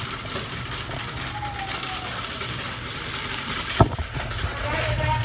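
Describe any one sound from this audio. A shopping cart rattles as it rolls along a hard floor.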